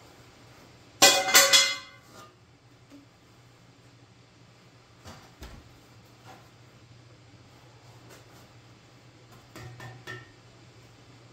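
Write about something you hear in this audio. A metal beam clanks against a steel frame.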